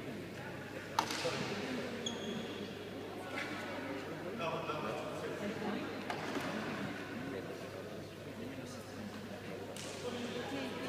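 Shuttlecocks are struck with sharp pops of rackets in a large echoing hall.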